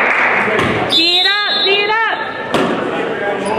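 A referee's whistle blows in sharp bursts.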